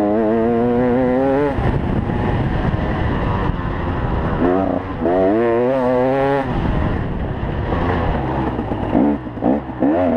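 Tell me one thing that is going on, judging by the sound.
Tyres churn through soft dirt.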